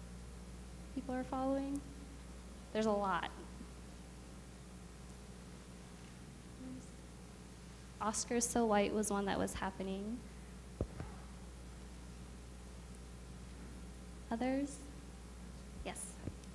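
A young woman speaks into a microphone in bursts with long pauses, heard through a loudspeaker in a large room.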